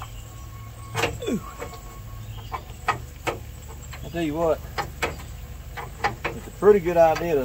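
Metal tools clink and tap on an engine.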